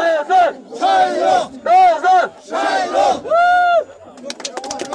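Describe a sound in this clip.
A man shouts loudly through a megaphone.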